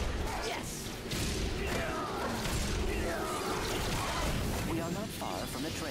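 Laser blasters fire in a video game.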